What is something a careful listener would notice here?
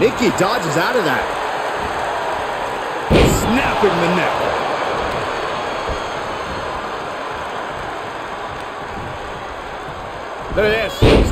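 A large crowd cheers steadily in a big arena.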